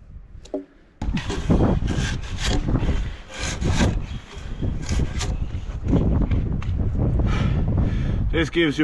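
A drawknife scrapes and shaves bark off a log.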